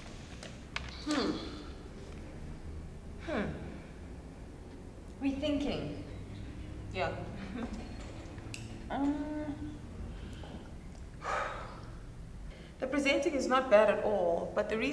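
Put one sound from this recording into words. A young woman speaks close to a microphone.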